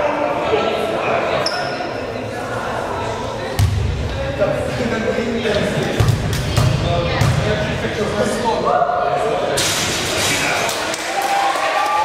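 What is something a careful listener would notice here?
Young people chatter in a large echoing gym.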